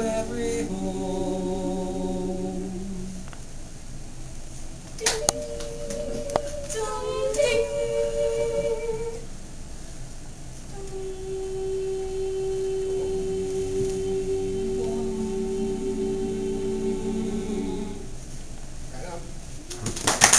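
A small mixed choir of young men and women sings in harmony, with long held notes.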